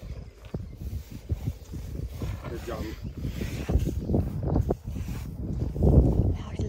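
Elephants shuffle and step heavily on dry dirt close by.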